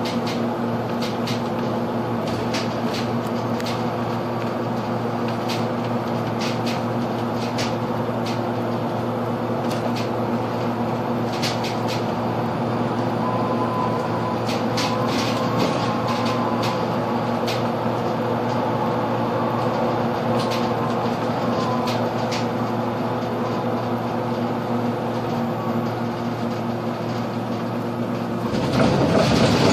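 Loose parts of a bus rattle and click.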